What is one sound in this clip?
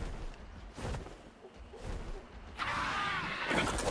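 A large bird's wings flap heavily.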